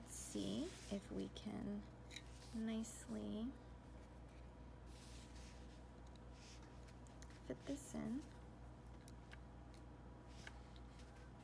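Small plastic and metal parts click and tap faintly as they are handled.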